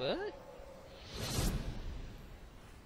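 A magical burst of energy whooshes.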